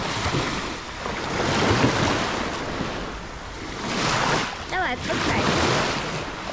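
Water splashes as a person wades through shallow sea.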